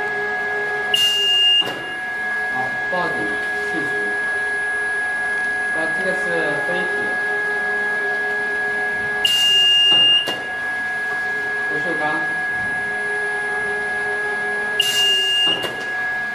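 A machine alarm beeps sharply three times.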